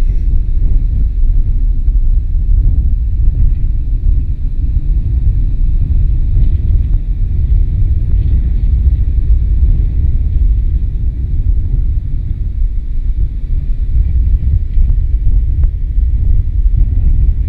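Strong wind rumbles and buffets across the microphone.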